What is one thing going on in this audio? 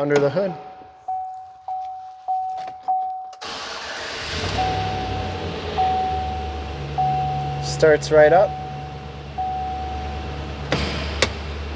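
A car's warning chime dings repeatedly.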